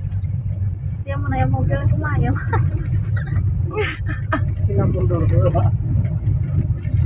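A young child talks nearby.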